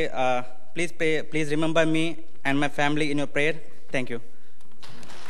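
A young man reads out calmly through a microphone.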